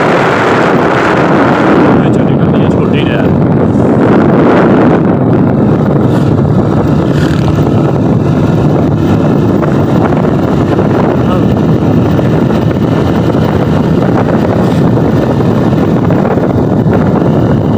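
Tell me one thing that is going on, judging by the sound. Wind rushes loudly past the microphone of a moving motorbike.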